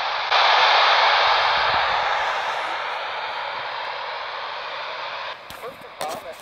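A two-way radio hisses loudly with static that slowly fades, then cuts off abruptly.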